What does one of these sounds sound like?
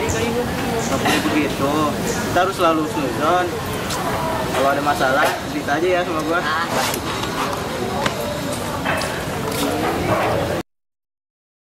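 A teenage boy talks calmly nearby.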